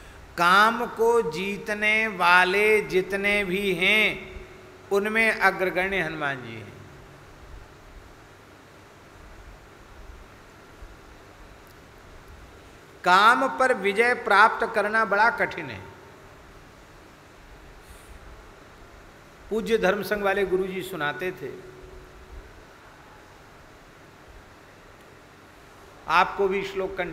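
A man speaks slowly and deeply into a microphone, in bursts with long pauses.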